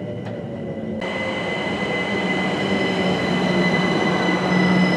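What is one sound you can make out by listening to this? An electric train hums loudly while standing nearby.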